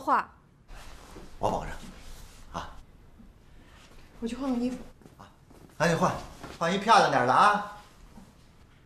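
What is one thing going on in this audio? A middle-aged man speaks cheerfully.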